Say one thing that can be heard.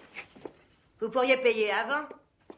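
A woman speaks loudly and excitedly close by.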